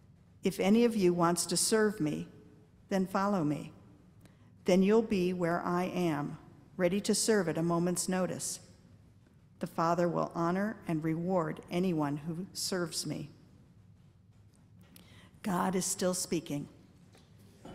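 A woman reads aloud through a microphone.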